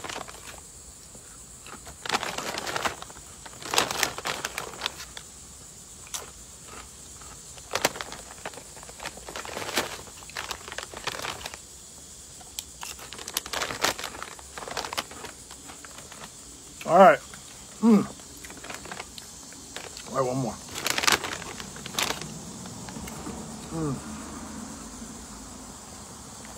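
A man crunches crisp chips while chewing.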